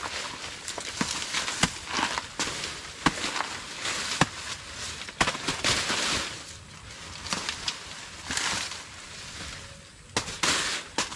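Large leaves rustle and swish.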